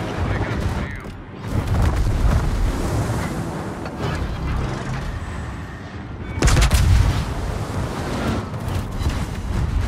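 Shells splash and explode in the water nearby.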